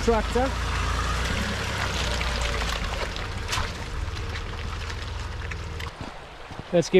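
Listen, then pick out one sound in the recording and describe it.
A vehicle engine rumbles as tyres churn through mud.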